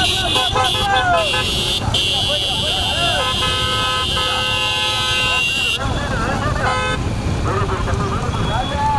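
A roadside crowd shouts and cheers.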